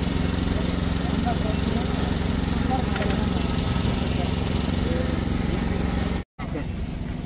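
Women chat in the background outdoors.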